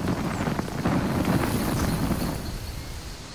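A torch flame roars and crackles.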